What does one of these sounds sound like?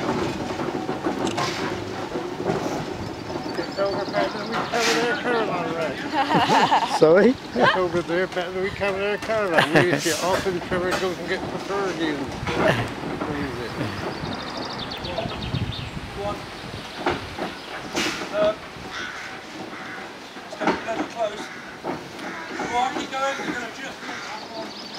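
Heavy wheels rumble and crunch over a road.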